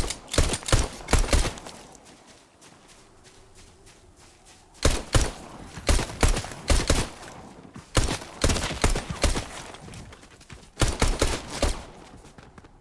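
Gunshots crack in quick, sharp bursts.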